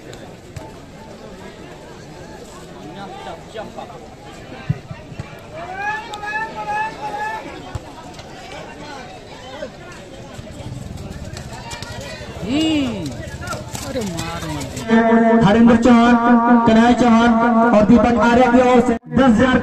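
A large crowd of spectators chatters and shouts outdoors at a distance.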